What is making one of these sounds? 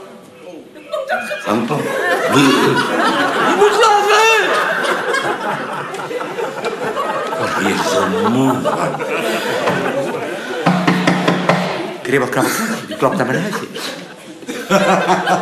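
An elderly man speaks theatrically, his voice rising and falling.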